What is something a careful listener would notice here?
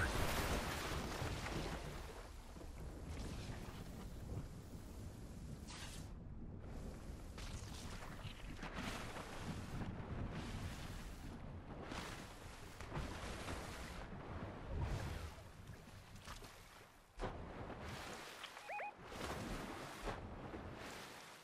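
A game character splashes and swims through water.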